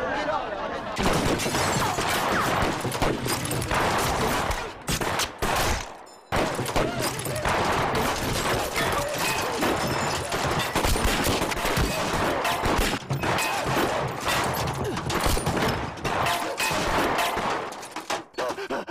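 Rifles fire in loud, rapid shots.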